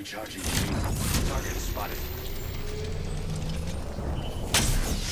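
A shield battery charges with a rising electronic whine.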